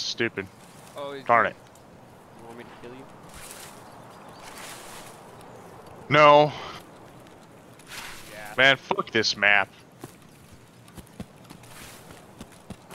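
Footsteps rustle through tall grass and undergrowth.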